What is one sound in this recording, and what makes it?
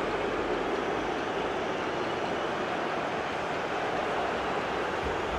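A large stadium crowd cheers and roars steadily.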